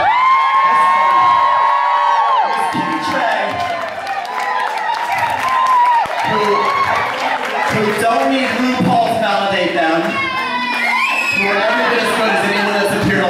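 A performer speaks loudly into a microphone through loudspeakers in a large echoing hall.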